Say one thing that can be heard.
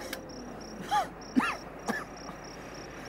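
A young man laughs and shouts nearby.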